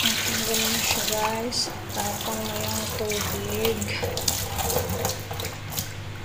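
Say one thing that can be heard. Tap water splashes onto a plastic board in a metal sink.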